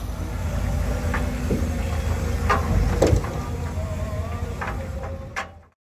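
Metal clanks and debris knocks as an excavator grab shakes out its load.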